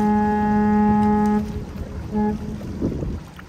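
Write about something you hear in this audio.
A ship's horn blasts loudly, then gives a short second toot.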